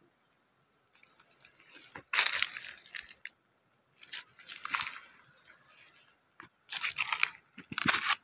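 Footsteps crunch on plastic sheeting.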